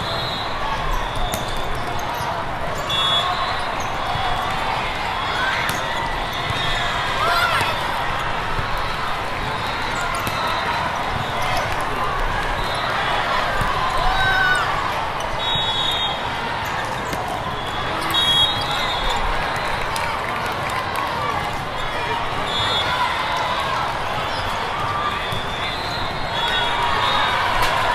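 A large crowd chatters and echoes through a big hall.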